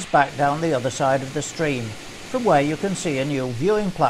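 A stream of water trickles through a narrow channel.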